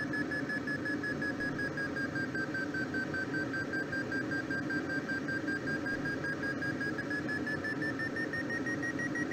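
Wind rushes steadily past a gliding aircraft.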